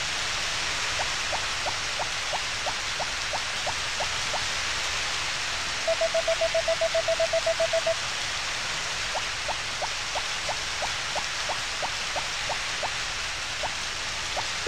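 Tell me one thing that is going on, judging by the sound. Light, soft footsteps tap quickly and evenly.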